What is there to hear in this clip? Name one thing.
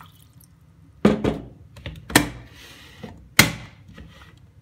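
A kettle lid clicks shut.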